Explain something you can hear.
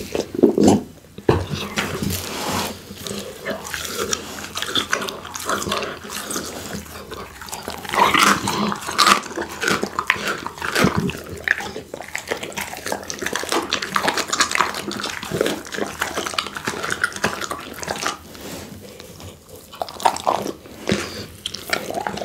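A pit bull chews and crunches a raw duck leg close to a microphone.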